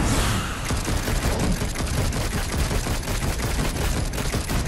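Rapid shots fire in a quick, even rhythm.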